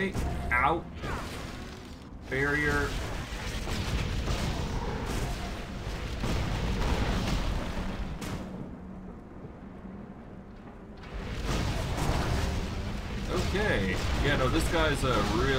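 Magic spells crackle and whoosh in a fight.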